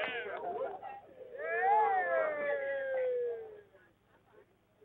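A group of men shout and cheer nearby.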